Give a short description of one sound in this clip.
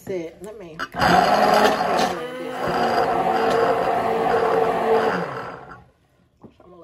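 A stick blender whirs steadily in liquid.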